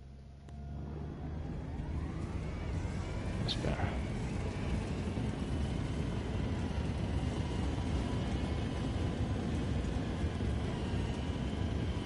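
A tank engine rumbles as the tank drives.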